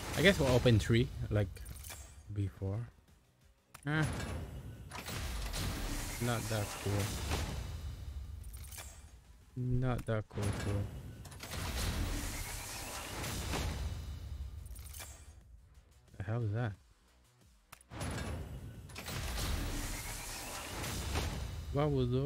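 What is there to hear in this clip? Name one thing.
A man talks into a microphone with animation, close by.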